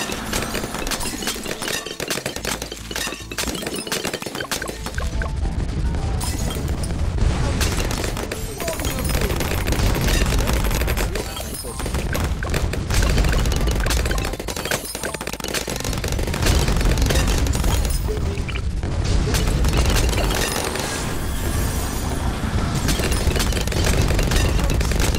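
Game explosions and pops go off rapidly and constantly.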